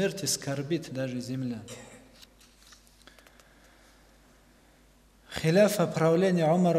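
A young man speaks calmly into a microphone, reading out, with pauses.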